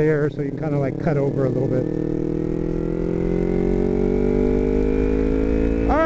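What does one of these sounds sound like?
A motorcycle engine revs up and down, then hums with a steadily rising pitch as it speeds up.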